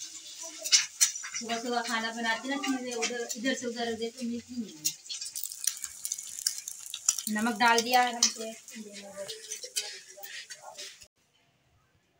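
An egg sizzles in hot oil.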